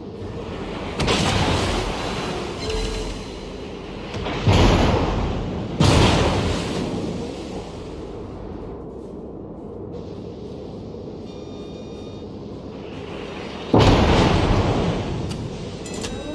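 Heavy naval guns fire with loud, rolling booms.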